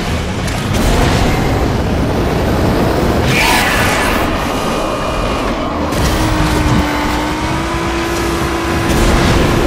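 A toy race car engine roars and whines steadily.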